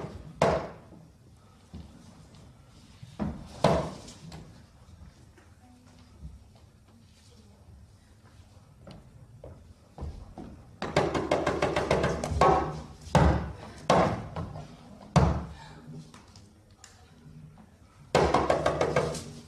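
Hand drums beat loudly in an echoing hall.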